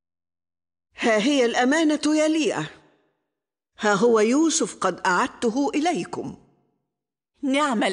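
An elderly woman speaks calmly and warmly.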